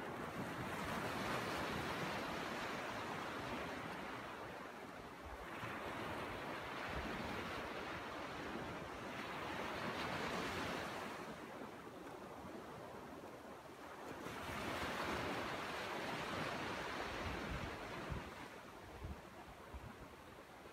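Waves break and wash up on a sandy shore in repeated surges.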